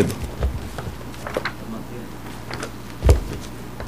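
A man's footsteps knock on the floor as he walks away.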